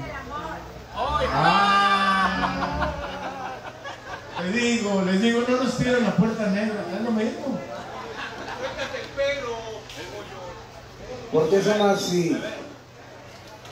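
A man sings loudly into a microphone through loudspeakers.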